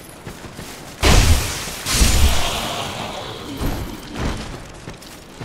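A heavy weapon strikes with loud, booming impacts.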